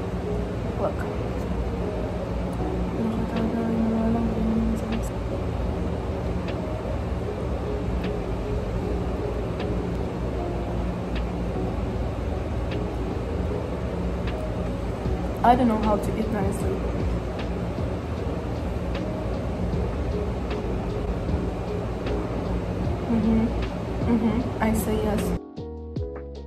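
A young woman talks close to the microphone with animation.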